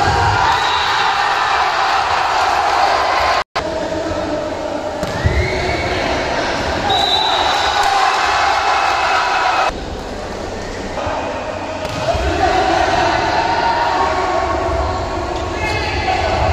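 A crowd of young men shouts and chatters in a large echoing hall.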